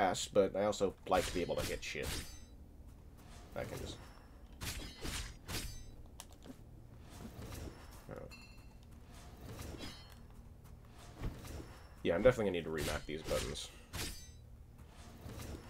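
Sword blades swish and clash in a fight.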